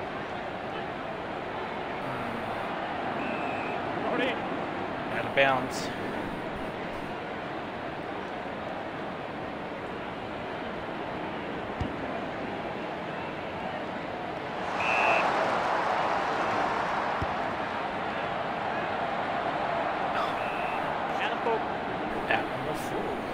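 A large stadium crowd cheers and roars steadily, swelling louder for a while.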